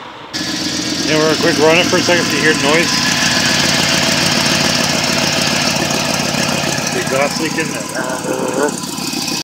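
A car engine idles with a steady, rough rumble.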